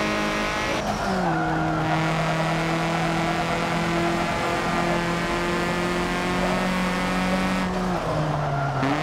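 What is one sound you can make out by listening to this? A race car engine briefly dips in pitch as it shifts gear.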